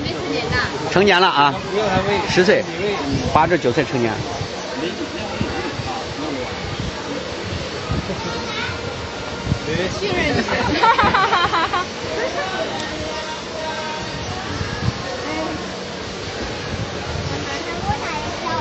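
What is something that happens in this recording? A crowd of people chatters outdoors in the background.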